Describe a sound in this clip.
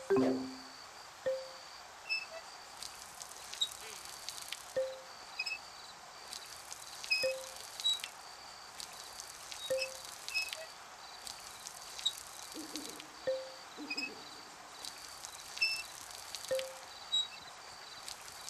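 Water sprinkles from a watering can.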